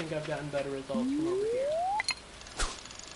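A fishing rod swishes as a line is cast.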